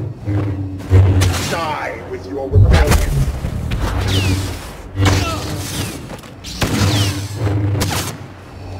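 Lightsabers clash with sharp crackling hits.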